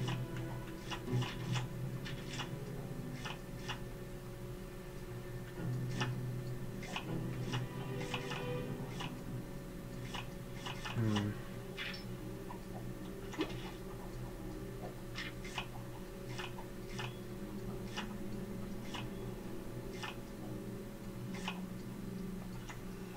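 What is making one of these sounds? Short electronic menu clicks tick repeatedly at an uneven pace.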